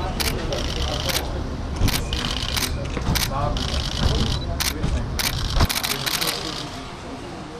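Men greet each other with loud, lively voices nearby.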